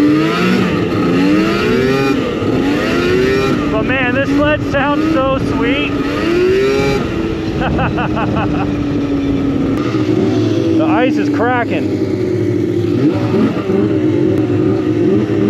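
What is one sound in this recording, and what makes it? A snowmobile engine drones close by, rising and falling in pitch as it revs.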